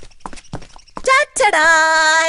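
A woman calls out loudly.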